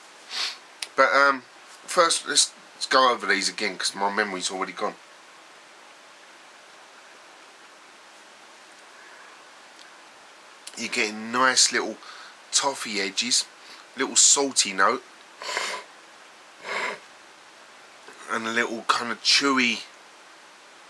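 A middle-aged man talks calmly and close to the microphone.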